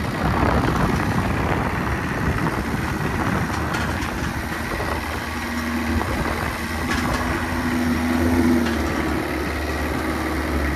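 A truck engine rumbles steadily close by.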